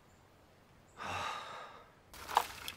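A young man sighs heavily.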